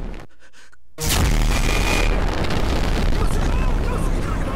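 Strong wind roars over open water.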